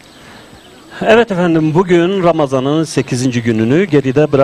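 A middle-aged man speaks calmly and clearly into a microphone.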